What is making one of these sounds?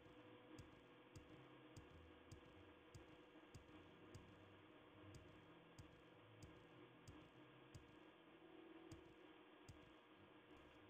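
Footsteps thud steadily on rocky ground.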